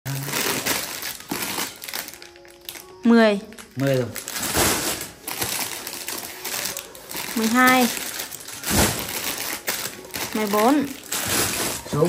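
Plastic packets rustle and crinkle as they are handled.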